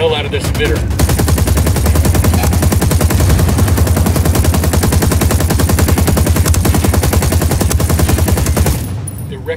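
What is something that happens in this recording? A rifle fires rapid bursts of shots close by.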